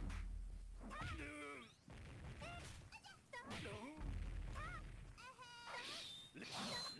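Swords slash and clash in a fighting game.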